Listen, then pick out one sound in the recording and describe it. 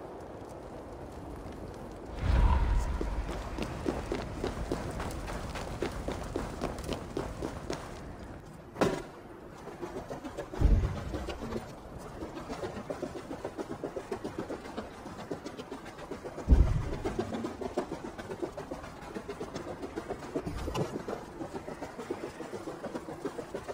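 Running footsteps crunch through snow.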